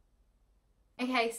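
A young woman speaks briefly and close by.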